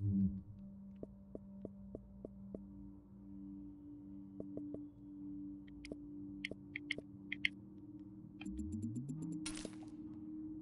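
Short electronic menu clicks tick several times.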